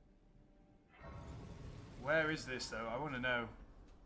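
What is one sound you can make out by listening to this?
A soft shimmering chime swells and rings out.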